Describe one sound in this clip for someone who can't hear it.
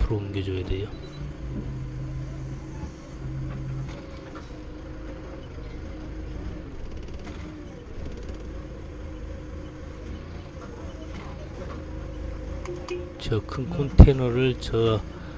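A forklift engine hums steadily up close.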